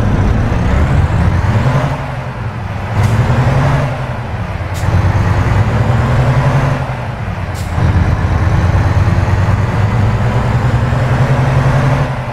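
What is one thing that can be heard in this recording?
A heavy truck engine rumbles low and steadily, easing off briefly between gear changes.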